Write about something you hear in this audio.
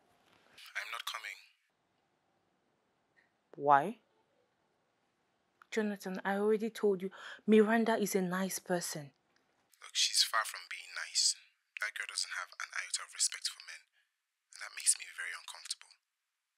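A young woman speaks quietly on a phone, close by.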